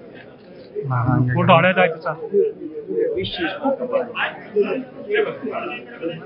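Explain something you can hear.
A man laughs and talks with animation close by.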